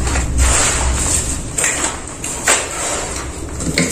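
Tools clink and rattle against a hard floor.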